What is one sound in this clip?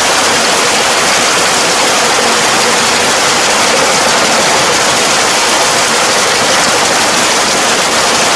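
A tractor engine runs steadily close by.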